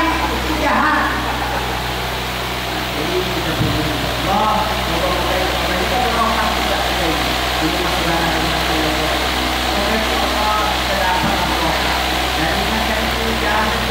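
A man speaks steadily into a microphone, heard through a loudspeaker in an echoing room.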